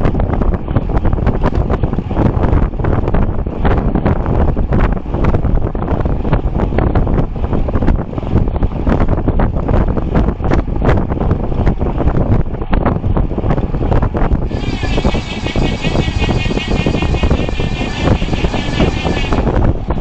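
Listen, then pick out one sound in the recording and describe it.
Strong wind roars steadily past while cycling fast outdoors.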